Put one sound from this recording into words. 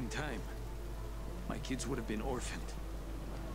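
A man speaks calmly, nearby.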